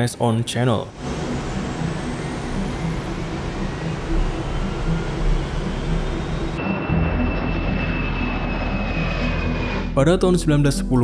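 Jet engines roar with a high, steady whine.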